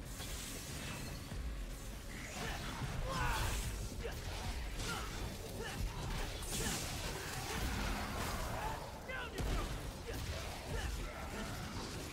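Sword slashes and metallic hits ring out in a fast video game fight.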